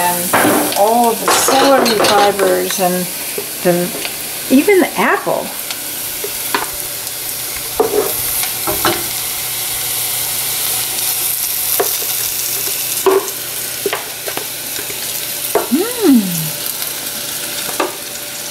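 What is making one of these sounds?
A wooden spoon scrapes and taps against a metal pot.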